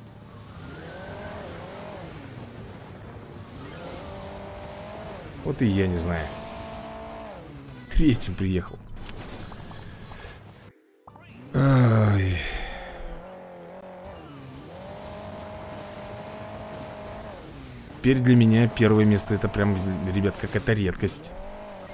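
Car engines whine and rev steadily.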